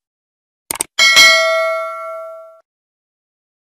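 A bell chimes brightly and rings out.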